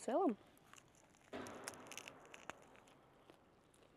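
A young woman bites into a crunchy snack and chews.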